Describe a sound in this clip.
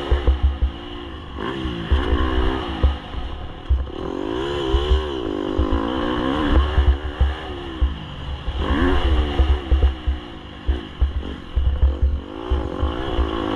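A dirt bike engine revs up and down, close by.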